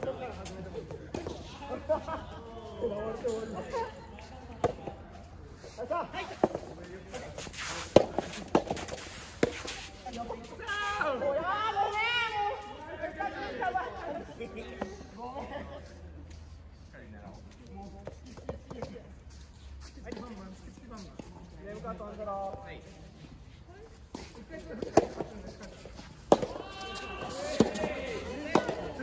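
Players, men and women, call out and chat at a distance.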